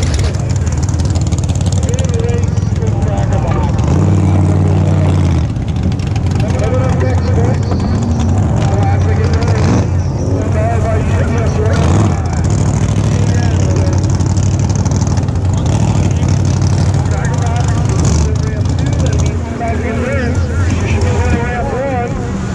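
A boat engine rumbles loudly and steadily close by.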